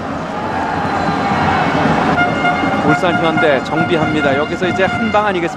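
A stadium crowd murmurs and cheers steadily, outdoors.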